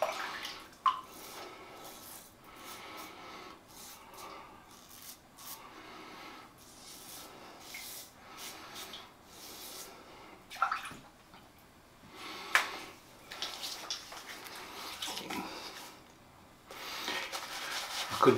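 A razor scrapes through stubble in short strokes.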